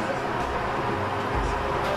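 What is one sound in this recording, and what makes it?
A metal spatula scrapes across a griddle.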